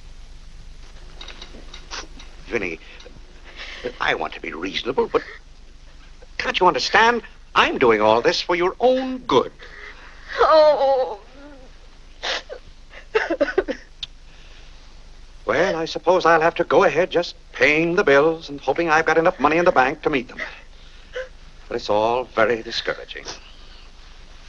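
A middle-aged man speaks gently and earnestly, close by.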